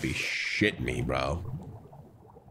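A young man speaks loudly and excitedly into a close microphone.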